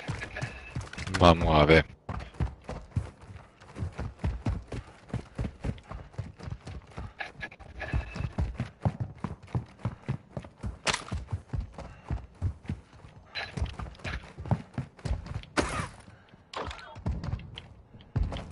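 Footsteps run quickly over hard, gritty ground.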